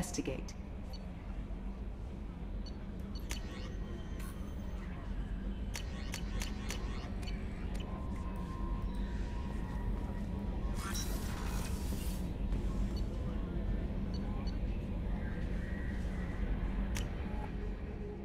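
Soft electronic beeps chirp now and then.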